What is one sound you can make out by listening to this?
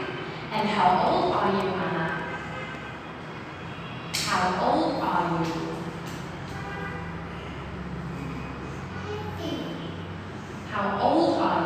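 A young girl answers in a small voice.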